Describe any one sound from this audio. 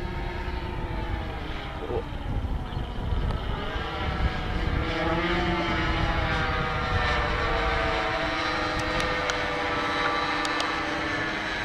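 A twin-engine radio-controlled model plane drones as it passes overhead, its engine pitch shifting.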